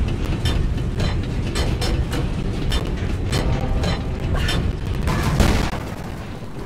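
A heavy stone ball rumbles as it rolls over stone.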